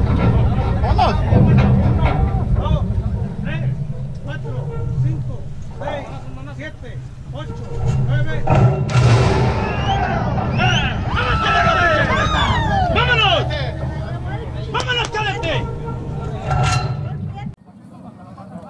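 Men talk and call out close by.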